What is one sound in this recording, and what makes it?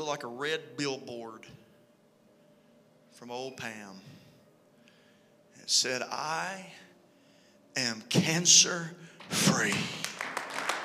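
A man speaks with animation into a microphone, with pauses, in a large echoing hall.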